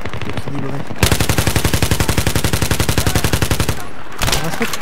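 A rifle fires in a rapid, steady burst.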